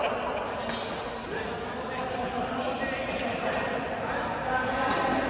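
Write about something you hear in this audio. Many players chatter and call out in a large echoing hall.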